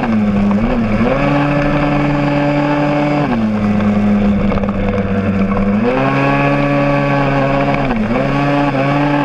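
A motorcycle engine hums steadily close by, its pitch rising and dropping as it changes speed.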